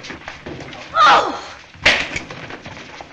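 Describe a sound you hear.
A woman cries out loudly.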